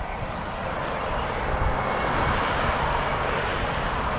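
A car passes by on the road.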